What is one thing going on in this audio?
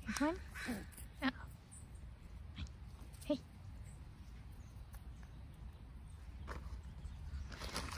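A squirrel scurries over dry grass and leaves.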